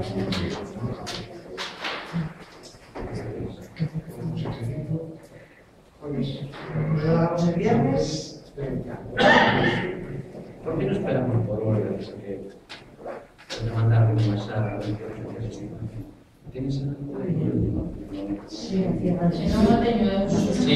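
A man speaks calmly to a room, heard a little distant.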